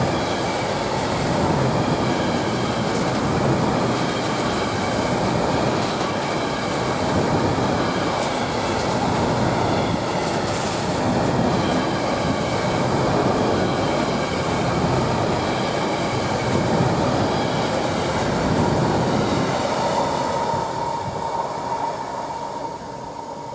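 A long freight train rumbles past close by.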